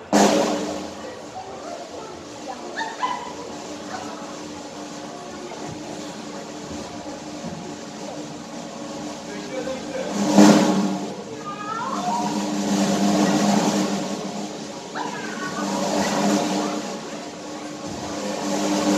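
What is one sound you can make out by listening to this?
Performers sing in a large echoing hall.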